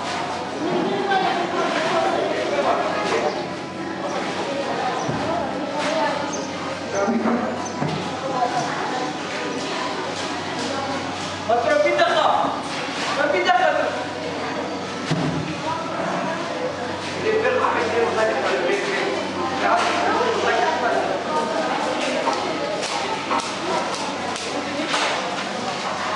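Several women chat and talk nearby.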